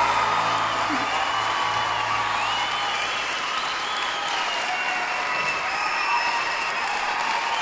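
A large crowd cheers and applauds loudly in a big echoing hall.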